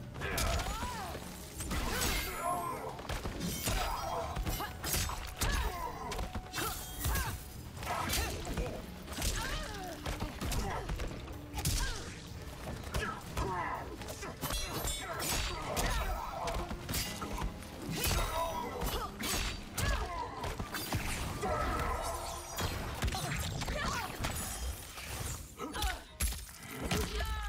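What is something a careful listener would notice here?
Fighters grunt and cry out with effort.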